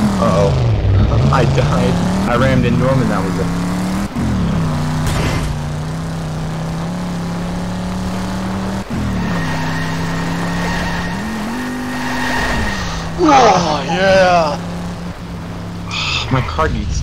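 A car engine roars, climbing in pitch and dropping with each gear change.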